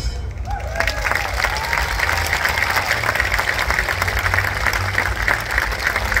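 An orchestra plays outdoors.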